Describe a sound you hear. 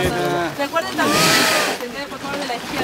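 A whale exhales with a loud, whooshing blow.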